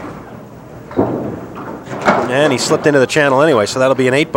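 A bowling ball thuds onto a wooden lane and rolls away.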